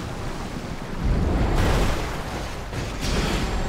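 Water splashes as a vehicle bursts up out of it.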